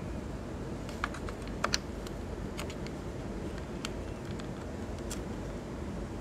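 A cable plug scrapes and clicks into a socket.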